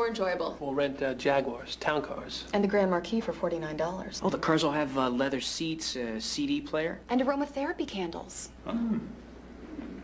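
A woman talks at close range.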